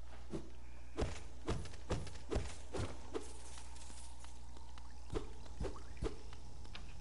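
A sword slashes with sharp swishes.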